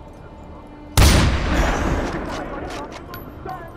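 A rifle fires a single loud shot that booms and echoes away.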